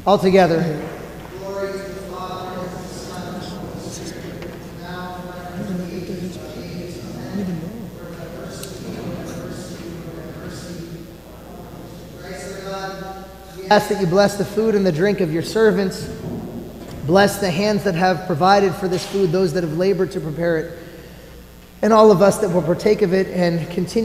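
A man chants loudly in a large echoing hall.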